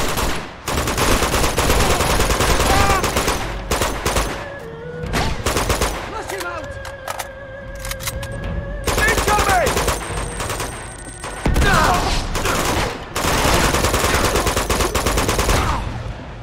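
Rifles fire in rapid bursts, echoing in a large hall.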